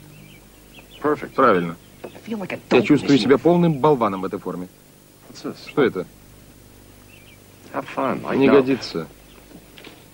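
A second man answers calmly close by.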